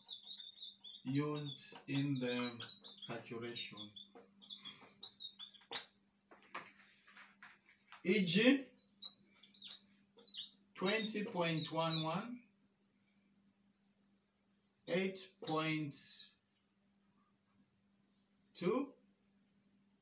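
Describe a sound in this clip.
A man speaks calmly and clearly, as if teaching.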